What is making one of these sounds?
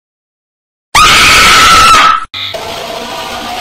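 A monster lets out a loud, harsh shriek.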